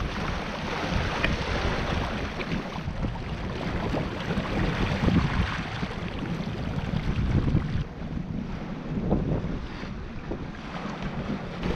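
Waves slosh and splash against a boat's hull.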